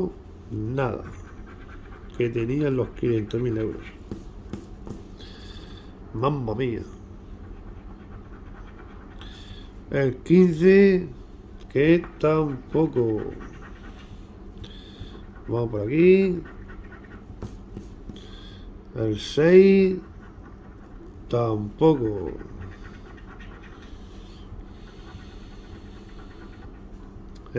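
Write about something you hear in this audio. A coin scratches at a scratch card with short, rasping strokes.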